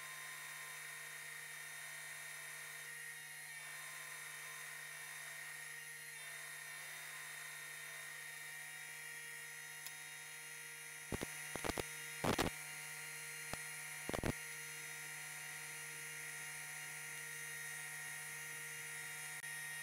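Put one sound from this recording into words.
A sewing machine hums as it stitches.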